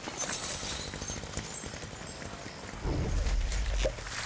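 Footsteps patter quickly across hard ground.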